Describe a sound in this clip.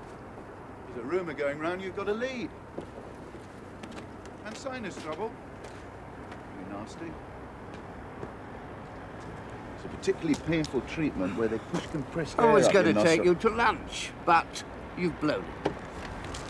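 A middle-aged man speaks from inside a car.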